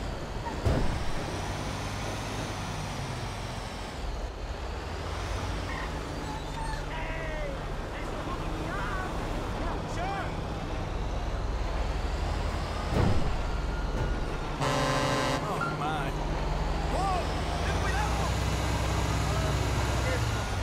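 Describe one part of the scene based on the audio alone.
A heavy truck engine drones while driving along a road.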